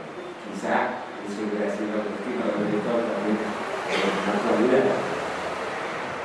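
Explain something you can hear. An elderly man speaks calmly through a microphone in an echoing hall.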